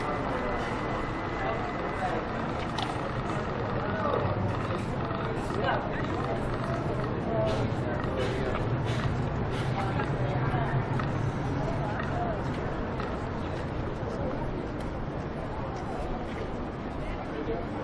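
A busy city street murmurs outdoors with distant traffic.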